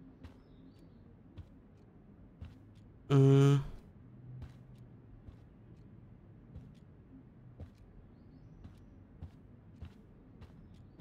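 Footsteps tap softly on a hard floor at a steady walking pace.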